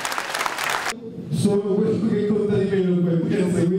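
A man speaks through a microphone.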